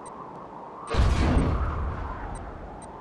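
A heavy structure drops into place with a deep boom.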